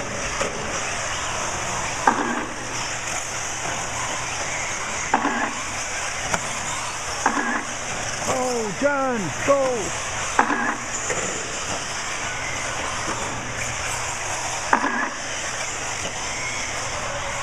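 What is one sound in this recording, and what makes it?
Small electric motors of toy cars whine steadily as the cars race around.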